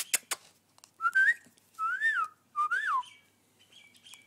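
A dog whines in short high yelps close by.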